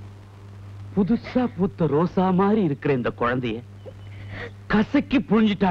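A middle-aged man speaks forcefully and with emotion, close by.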